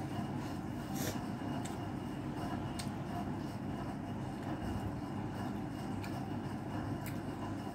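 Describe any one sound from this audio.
Vegetables rustle and crunch as they are picked from a plate.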